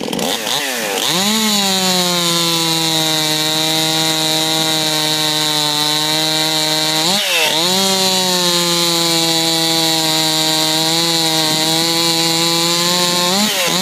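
A chainsaw runs steadily at full speed, cutting through a log.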